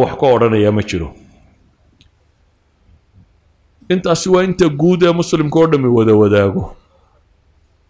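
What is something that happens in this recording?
A middle-aged man speaks calmly through a microphone, pausing between phrases.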